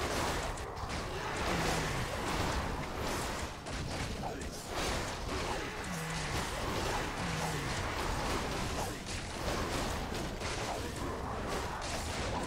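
Swords clash and strike repeatedly in a fight.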